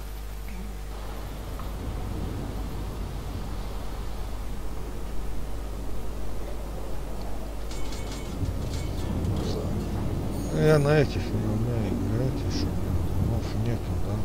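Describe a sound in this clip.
Waves wash steadily against a ship's hull.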